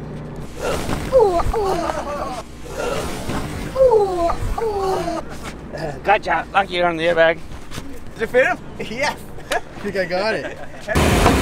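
A young boy shrieks and laughs excitedly close by.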